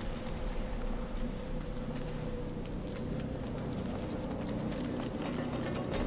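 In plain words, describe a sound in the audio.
A fire crackles and burns nearby.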